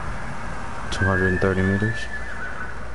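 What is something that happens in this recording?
A soft chime rings out.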